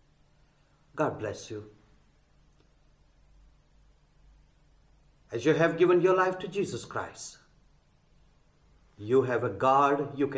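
A middle-aged man speaks calmly and clearly into a close microphone, with pauses between phrases.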